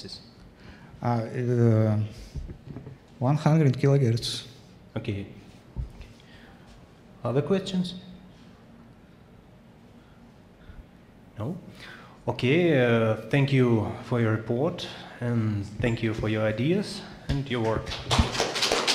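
A young man speaks calmly into a microphone in a room.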